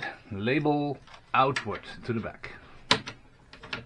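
Cables rustle as they are handled.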